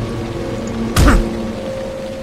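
A door clicks open.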